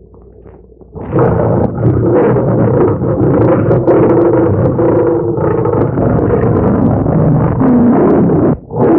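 Lions growl and roar loudly.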